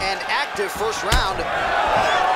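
A kick lands on a body with a dull thud.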